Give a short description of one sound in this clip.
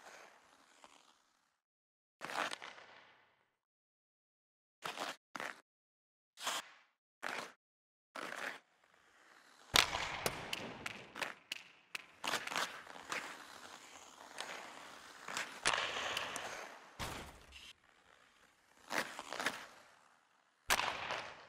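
Skates scrape and hiss across ice.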